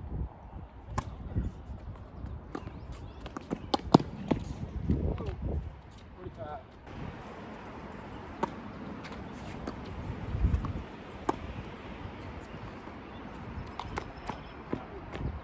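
Tennis balls are struck by rackets with sharp pops.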